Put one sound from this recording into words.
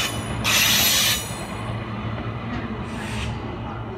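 An electric passenger train rolls past on rails.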